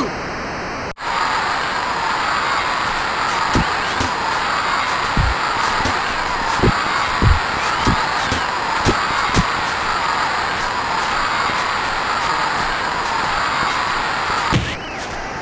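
A crowd cheers and murmurs steadily.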